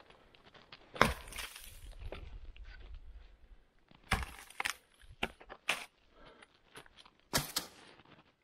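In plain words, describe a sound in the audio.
Wood cracks and snaps as a branch breaks off.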